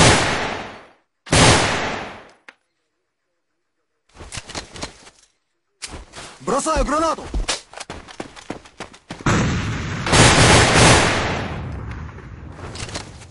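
A rifle fires loud single shots that echo away.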